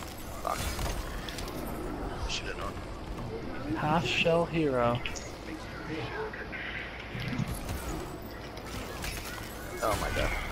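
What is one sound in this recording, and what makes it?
Ice shatters with a crash.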